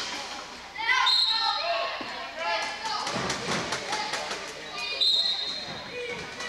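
A referee's whistle blows in short sharp blasts.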